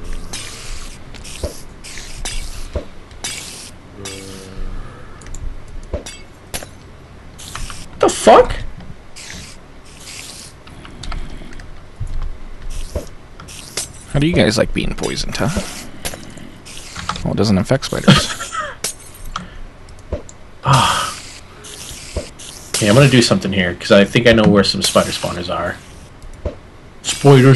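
Spiders hiss and chitter close by.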